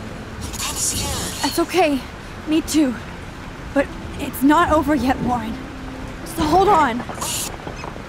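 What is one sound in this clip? A young woman talks quietly and tensely on a phone, close by.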